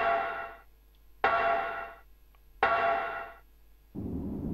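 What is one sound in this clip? Metal ladder rungs clang in slow steps as someone climbs.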